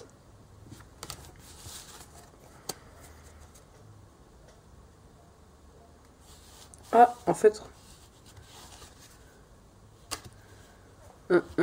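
Playing cards slap and slide onto a table.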